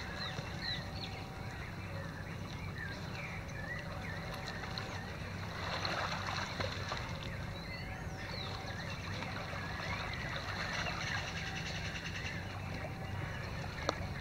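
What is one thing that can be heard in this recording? Water splashes softly as people swim nearby.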